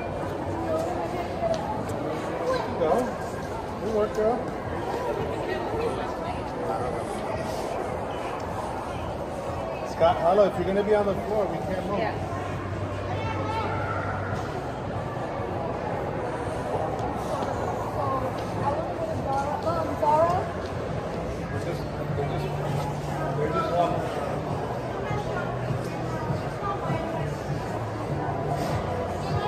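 Voices of shoppers murmur and echo through a large indoor hall.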